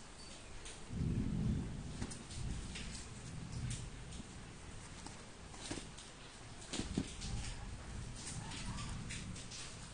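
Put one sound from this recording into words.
A cardboard parcel scrapes and thumps as it is turned over on a hard floor.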